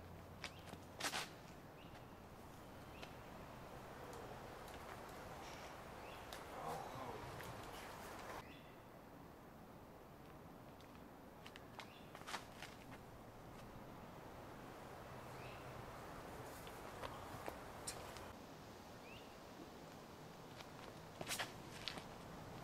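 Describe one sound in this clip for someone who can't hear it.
A disc player's feet scuff and thud on a dirt path during a throw.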